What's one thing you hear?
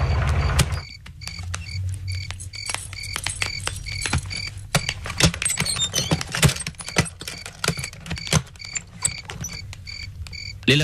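Footsteps hurry across a hard floor.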